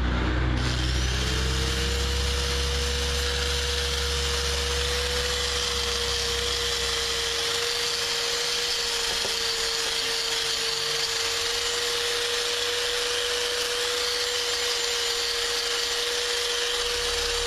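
A small power tool whines steadily.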